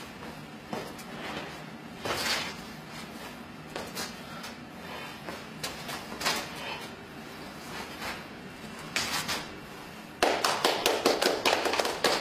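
Shoes scuff and stamp on hard pavement.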